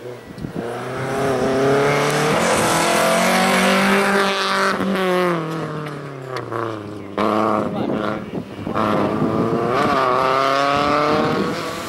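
A small car engine revs hard close by, rising and dropping in pitch as it shifts gears.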